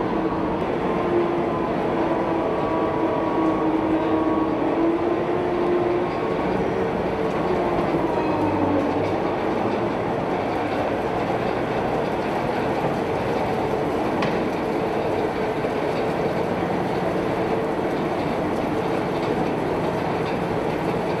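The diesel engine of a tracked amphibious assault vehicle rumbles and whines as the vehicle drives past.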